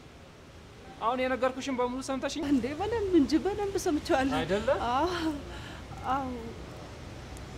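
A young woman speaks with emotion nearby.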